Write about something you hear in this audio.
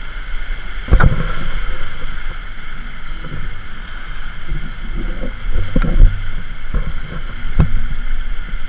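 Waves slap against a sailing boat's bow.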